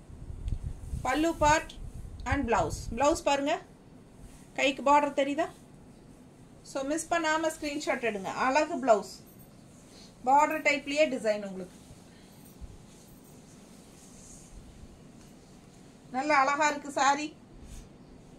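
A middle-aged woman talks with animation, close by.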